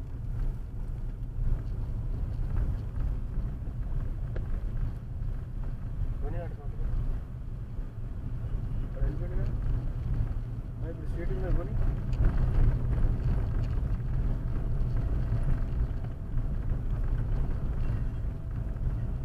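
A car engine hums steadily while driving on a wet road.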